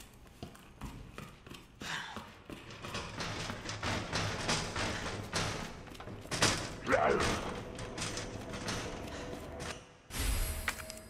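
Footsteps tread on a hard floor at a steady walking pace.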